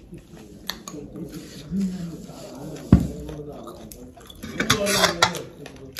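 Fingers clink against a ceramic bowl.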